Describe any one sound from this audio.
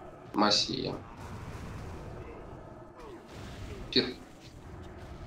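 Magic spell effects whoosh and crackle in short bursts.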